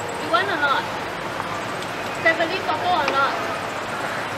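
A young woman talks nearby outdoors.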